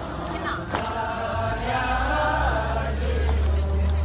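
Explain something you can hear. A group of women sing together nearby.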